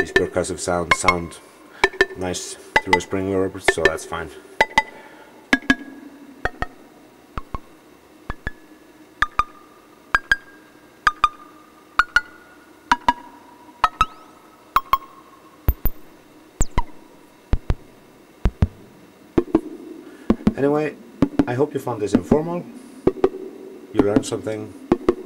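A modular synthesizer plays a rhythmic pattern of sharp clicking percussion.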